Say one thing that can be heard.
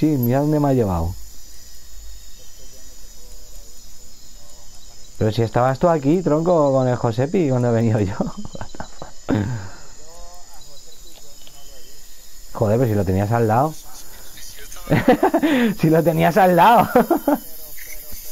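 A fishing reel whirs softly as it is wound in.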